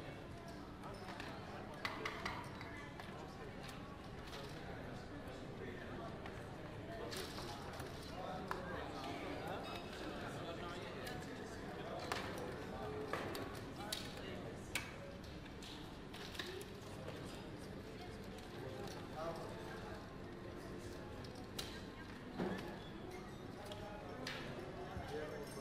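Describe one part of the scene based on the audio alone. Casino chips click and clatter as they are stacked and pushed across a table.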